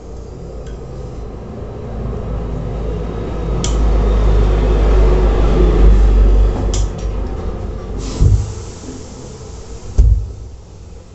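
A steam iron hisses and slides over cloth.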